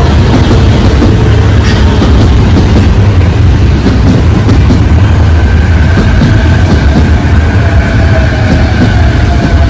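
A train rumbles past close by, its wheels clattering rhythmically on the rails.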